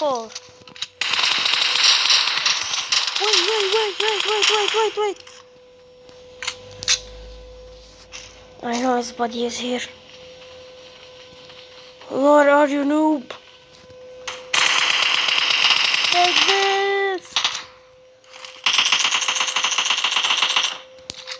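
Automatic rifles fire in rapid, loud bursts.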